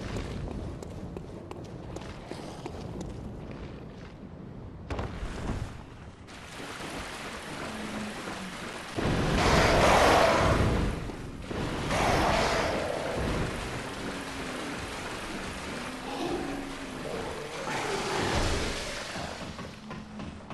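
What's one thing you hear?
Footsteps splash quickly across wet stone.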